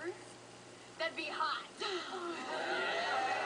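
A young woman speaks excitedly, heard through a loudspeaker.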